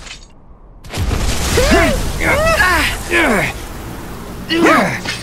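A blade swooshes through the air with a rushing gust.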